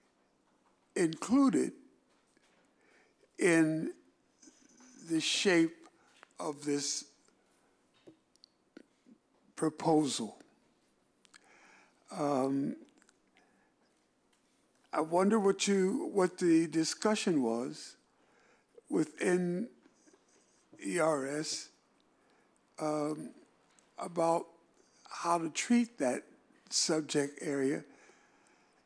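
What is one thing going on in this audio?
An elderly man speaks slowly and haltingly into a microphone, with pauses between phrases.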